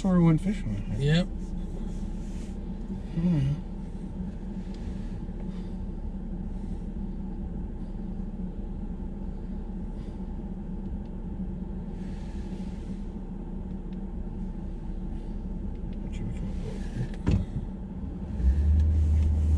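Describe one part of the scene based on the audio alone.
A vehicle engine idles with a steady low hum.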